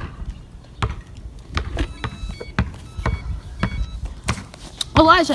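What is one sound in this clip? A basketball bounces on asphalt outdoors.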